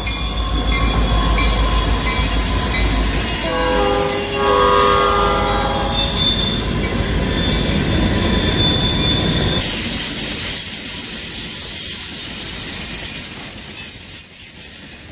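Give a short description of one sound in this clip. Freight cars clatter and rattle along the rails.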